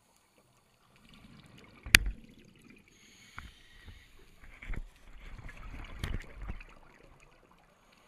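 Scuba bubbles gurgle and rush as divers exhale underwater.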